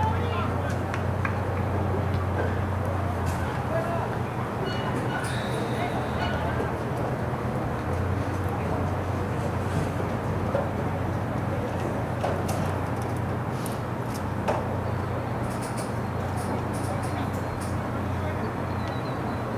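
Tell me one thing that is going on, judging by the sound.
A crowd of spectators chatters in the open air at a distance.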